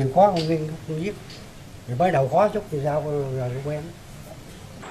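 An elderly man speaks slowly and haltingly, close by.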